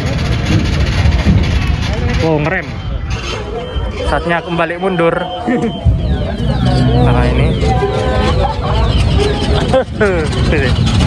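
A crowd of adults and children chatters nearby outdoors.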